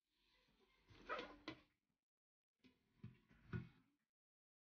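A metal tin lid is lifted off a box.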